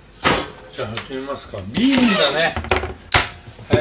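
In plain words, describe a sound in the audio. A plastic cutting board knocks down onto a counter.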